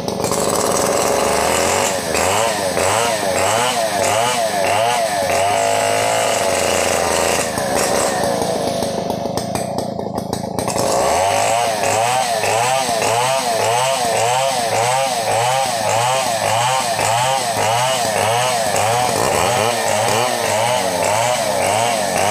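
A chainsaw roars up close, its engine pulsing as it cuts through wood.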